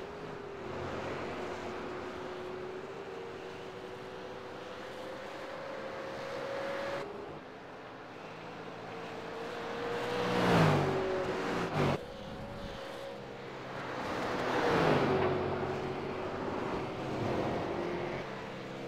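A racing car engine roars at high revs, shifting gears as it speeds up and slows down.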